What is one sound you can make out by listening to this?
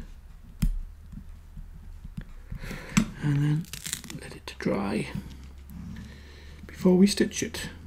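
Small pieces of leather are handled and set down with light taps on a hard board.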